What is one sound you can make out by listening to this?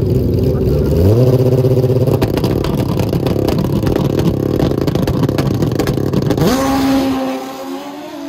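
A drag racing motorcycle engine roars loudly and revs up.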